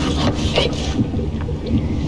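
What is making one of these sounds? A knife chops meat on a board.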